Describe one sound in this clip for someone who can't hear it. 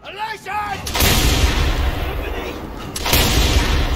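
A burst of flame roars loudly.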